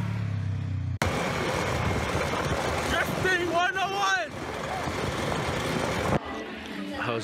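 A young man shouts and talks excitedly over engine and wind noise.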